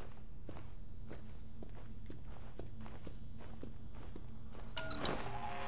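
Footsteps tap evenly on a hard floor.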